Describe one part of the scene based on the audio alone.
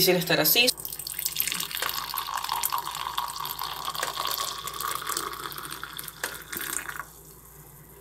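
Hot liquid pours and splashes steadily into a mug.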